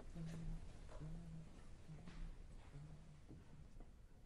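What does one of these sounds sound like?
A big band plays low, held notes in a large hall.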